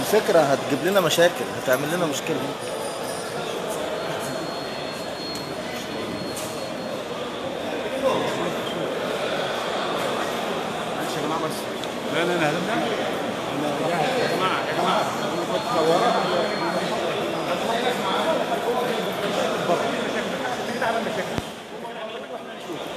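A crowd of men talks and murmurs nearby in an echoing hall.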